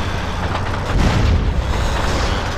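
A motorbike crashes to the ground with a heavy thud.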